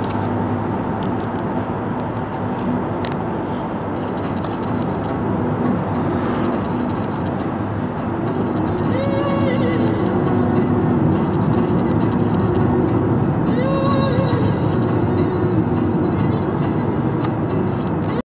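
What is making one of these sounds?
A car's engine hums steadily as it drives along a road.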